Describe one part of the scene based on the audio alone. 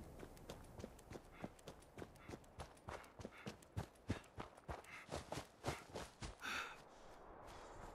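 Footsteps crunch quickly on gravel.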